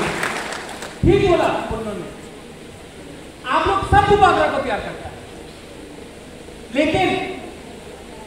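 A man shouts forcefully through a microphone and loudspeakers, echoing in a large hall.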